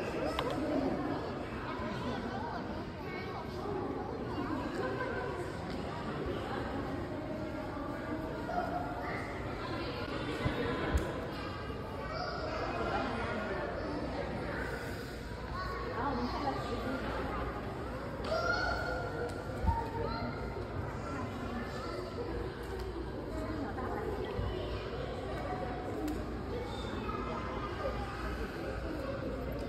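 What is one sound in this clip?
Many voices chatter and murmur throughout a large echoing hall.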